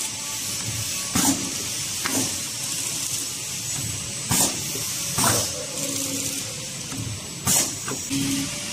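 A packing machine clicks and clacks rhythmically.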